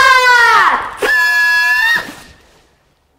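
Party horns blow with a buzzing toot.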